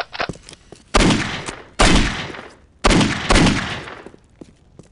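Pistol shots ring out loudly, one after another.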